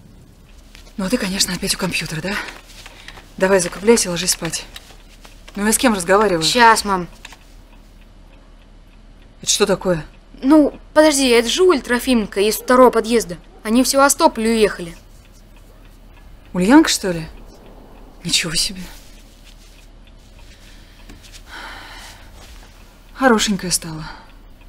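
A woman speaks nearby, calmly and then sharply.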